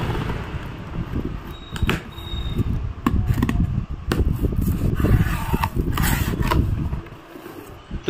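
Cardboard rustles and crinkles as a box is handled.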